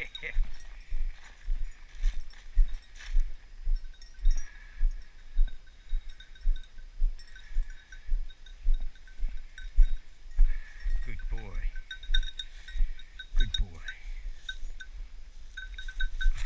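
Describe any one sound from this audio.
Footsteps crunch steadily through dry grass and leaves.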